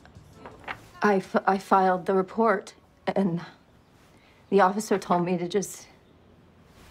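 A young woman speaks in an upset voice close by.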